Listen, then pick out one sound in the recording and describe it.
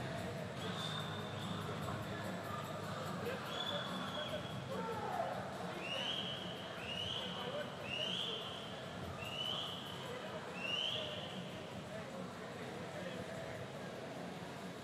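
Swimmers splash and kick through the water.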